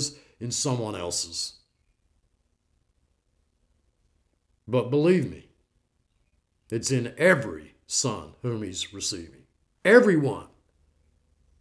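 An elderly man speaks calmly into a nearby microphone, with pauses between phrases.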